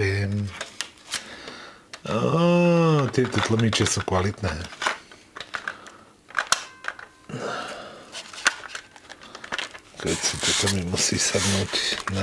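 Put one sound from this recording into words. A cassette clatters into a tape deck.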